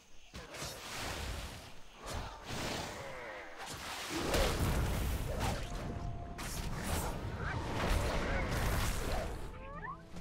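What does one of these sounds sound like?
Weapons clash and strike in a noisy fight.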